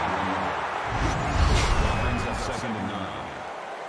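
A loud whoosh sweeps past.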